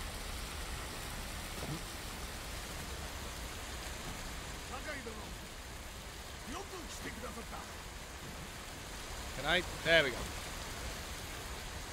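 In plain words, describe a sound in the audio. Waves wash and splash against rocks nearby.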